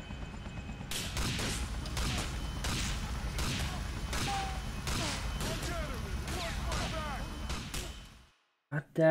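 Gunshots crack rapidly in a game.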